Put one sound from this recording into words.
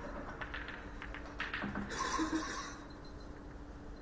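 Billiard balls clack together and roll across the table.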